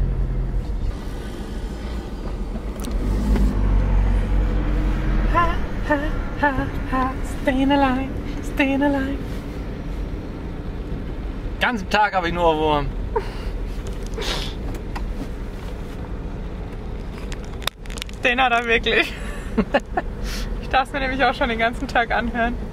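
A van engine hums steadily.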